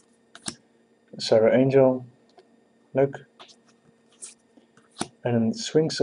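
Playing cards slide and rustle against each other.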